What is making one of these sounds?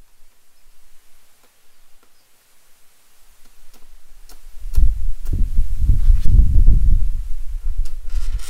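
A pencil scratches on a wooden board.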